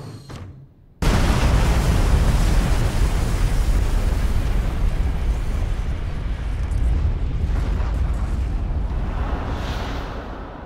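A train rumbles loudly through a tunnel.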